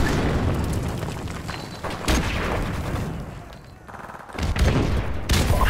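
Gunshots fire in loud bursts with heavy booms.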